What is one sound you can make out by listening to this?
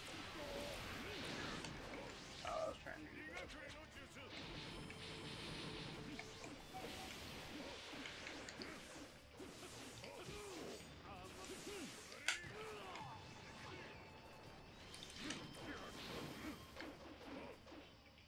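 Blades clash and strike in rapid bursts.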